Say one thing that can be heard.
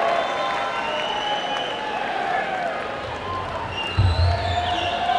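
A live band plays music loudly in a large hall.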